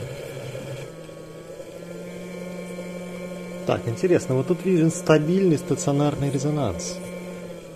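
An electric motor hums steadily.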